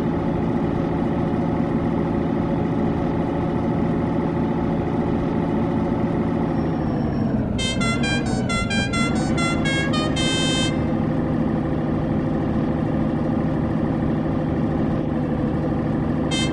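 A truck's diesel engine drones steadily, dipping briefly in pitch before picking up again.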